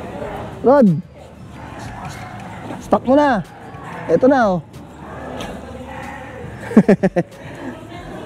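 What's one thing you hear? A dog yelps and whines in short, high cries.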